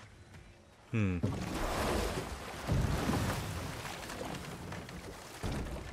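A wooden boat slides onto water and splashes.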